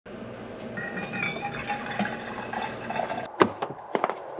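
Hot water pours from a kettle into a flask, gurgling and rising in pitch.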